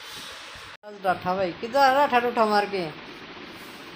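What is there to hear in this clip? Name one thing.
A young boy talks loudly and playfully close by.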